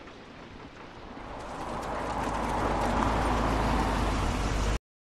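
A car engine hums steadily as a taxi drives along.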